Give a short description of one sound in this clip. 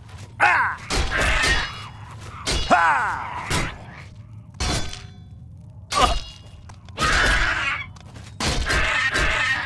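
A weapon strikes with heavy thuds.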